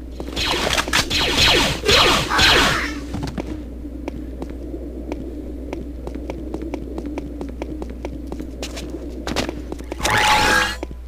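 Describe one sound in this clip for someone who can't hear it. Footsteps tap steadily on a metal floor.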